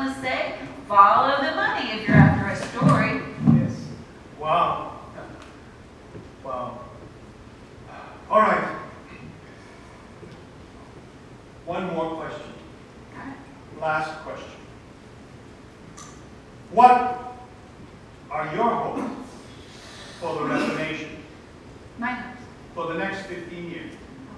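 A woman speaks through a microphone with animation in a large echoing hall.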